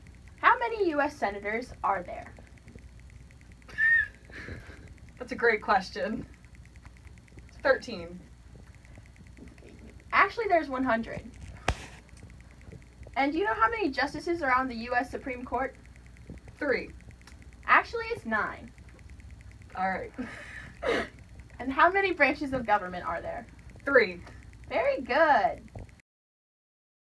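A teenage girl talks close by.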